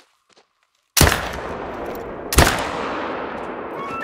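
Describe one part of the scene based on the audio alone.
A hunting rifle fires a shot that echoes across open country.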